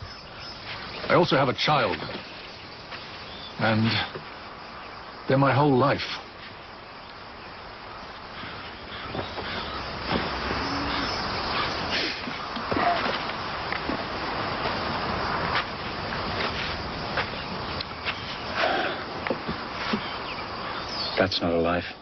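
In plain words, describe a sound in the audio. Young men talk calmly nearby.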